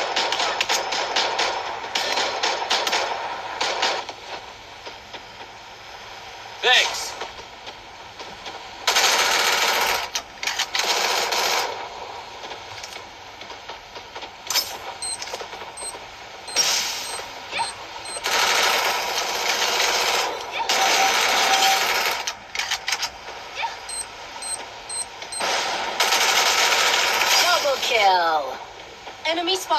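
Rapid gunfire and game sound effects play loudly from a phone.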